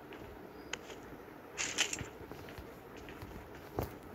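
Items click as they are picked up.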